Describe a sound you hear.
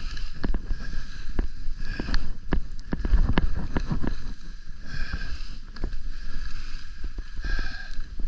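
Ski poles click and crunch into the snow.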